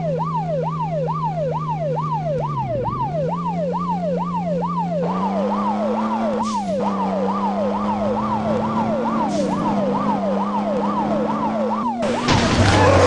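A siren wails in fast, repeating sweeps.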